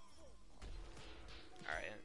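A video game explosion booms.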